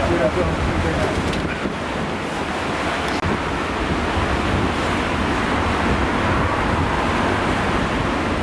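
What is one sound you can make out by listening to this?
Rough waves crash and roar against rocks.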